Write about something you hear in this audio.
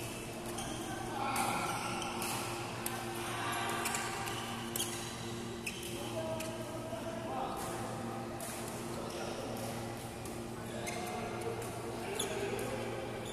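Men call out to each other across the hall.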